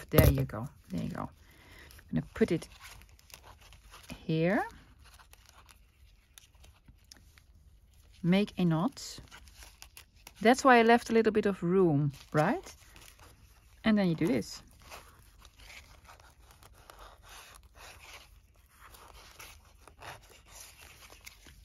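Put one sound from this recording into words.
A string rustles softly as it is wound around paper.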